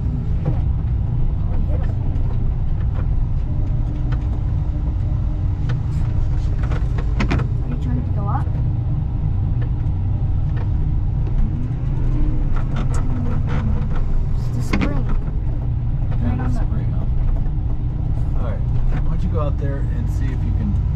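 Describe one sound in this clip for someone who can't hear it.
A heavy diesel engine rumbles steadily up close.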